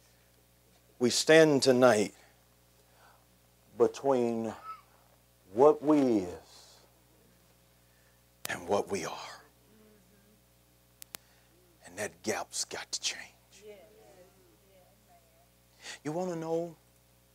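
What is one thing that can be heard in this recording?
A man speaks with animation, in short bursts with pauses.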